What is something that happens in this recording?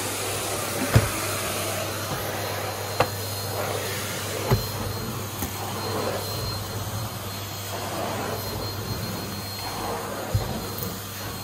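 A vacuum nozzle knocks against the floor now and then.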